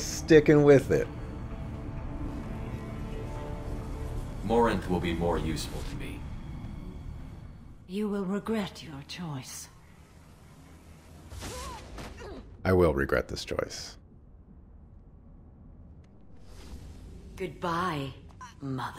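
A woman speaks coldly and menacingly, close by.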